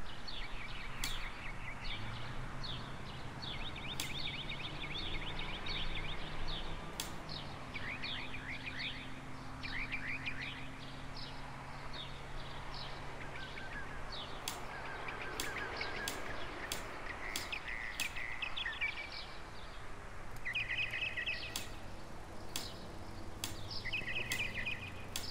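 Water drips slowly from a tap into a metal sink.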